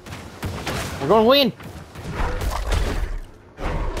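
Blades slash and thud against monsters.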